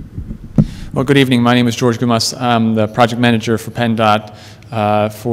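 A man speaks calmly into a microphone over a loudspeaker in a large echoing hall.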